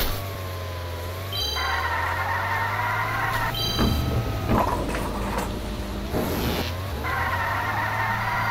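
A toy-like kart engine hums and whines steadily, rising in pitch as it speeds up.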